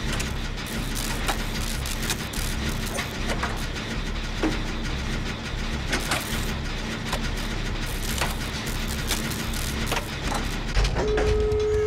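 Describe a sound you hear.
A machine clanks and rattles as it is repaired.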